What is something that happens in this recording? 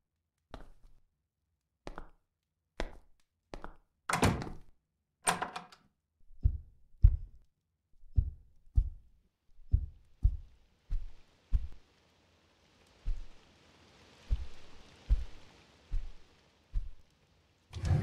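Footsteps thud at a steady walking pace on a hard floor.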